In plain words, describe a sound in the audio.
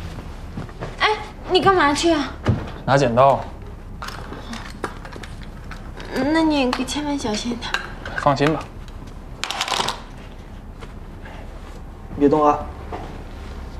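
A young woman speaks nearby in a lively, teasing voice.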